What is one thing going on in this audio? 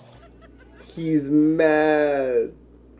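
A young man laughs and exclaims loudly into a microphone.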